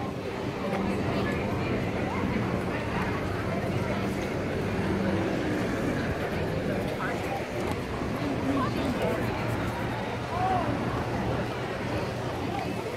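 Traffic hums steadily nearby.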